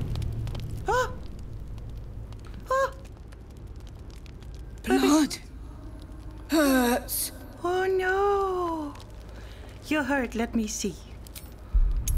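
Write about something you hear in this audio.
A young creature screeches and squawks in high, bending cries.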